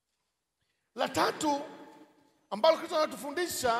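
A middle-aged man speaks with animation into a microphone, heard over a loudspeaker in an echoing hall.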